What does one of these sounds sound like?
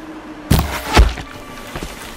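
An arrow strikes with a sharp thud.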